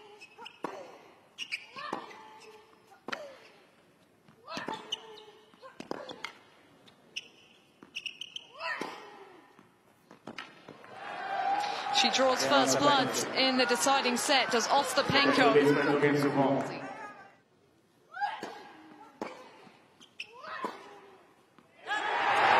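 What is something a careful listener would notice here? A tennis ball is struck back and forth with rackets.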